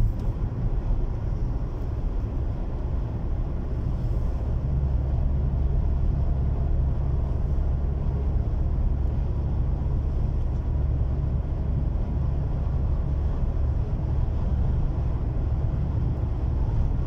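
A car rumbles low and steady while driving.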